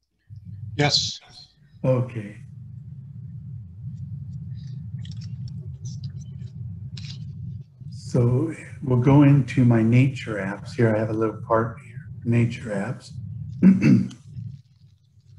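A middle-aged man speaks calmly through an online call microphone.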